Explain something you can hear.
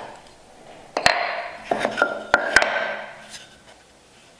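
Wooden pieces knock together on a workbench.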